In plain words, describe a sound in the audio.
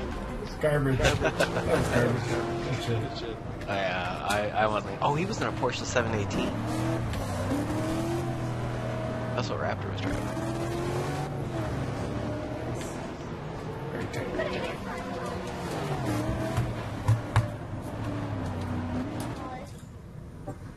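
A racing car engine revs and whines steadily.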